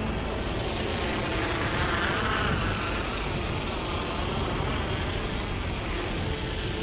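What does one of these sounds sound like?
Wind rushes during a fast dive through the air.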